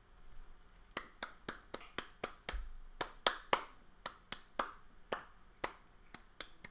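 A young woman claps her hands quickly.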